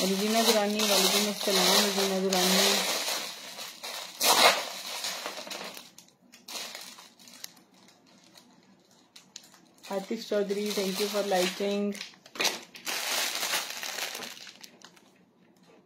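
A plastic bag crinkles under a hand.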